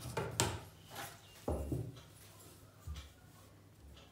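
A wooden ruler knocks against a table.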